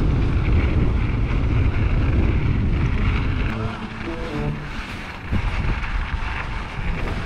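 Bike tyres crunch and hiss over packed snow.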